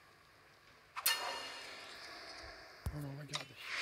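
A bright magical whoosh bursts out and fades.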